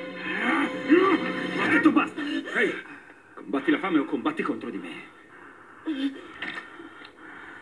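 A man speaks in a low, tense voice, heard through a television speaker.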